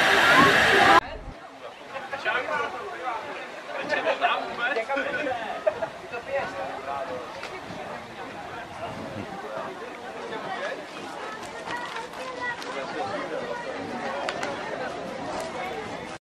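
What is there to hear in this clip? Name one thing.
A crowd of adults and children murmurs and chatters outdoors at a distance.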